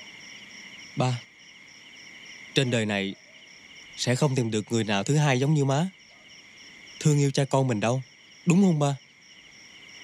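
A young man speaks with emotion, close by.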